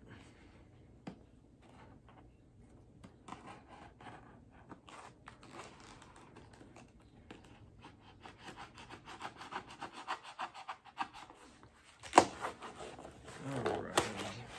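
Plastic packaging crinkles and rustles in a man's hands.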